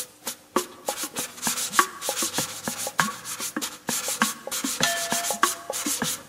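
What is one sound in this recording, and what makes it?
Ankle rattles shake with dancers' steps outdoors.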